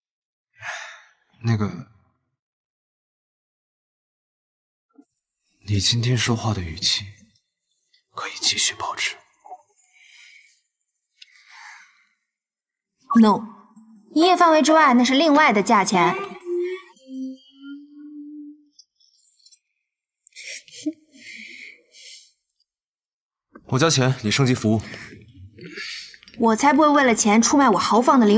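A young woman speaks softly and teasingly, close by.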